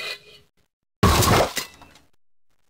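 A heap of metal junk crashes down loudly.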